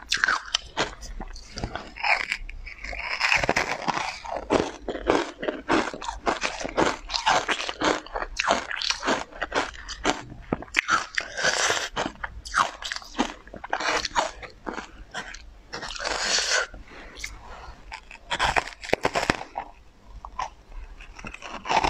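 A young woman bites into an icy, crumbly treat with a crisp crunch.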